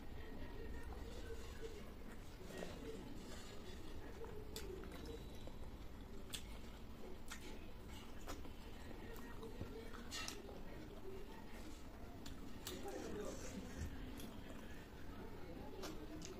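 A young woman chews and smacks her lips close up.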